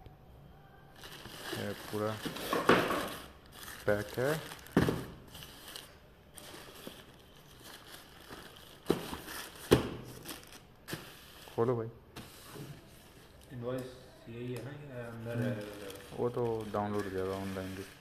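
A plastic mailer bag crinkles and rustles as hands handle it.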